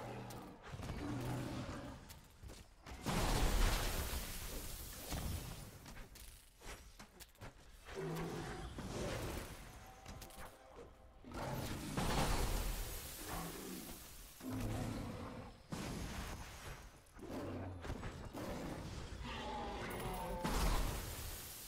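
Magic blasts crackle and boom in bursts.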